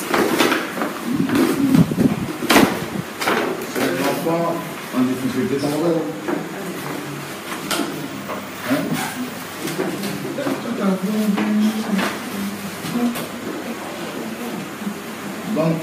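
Several adults and children talk over one another.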